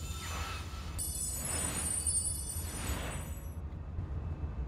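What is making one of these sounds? A bright chime rings out as an item is found.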